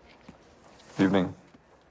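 A middle-aged man speaks a short greeting calmly.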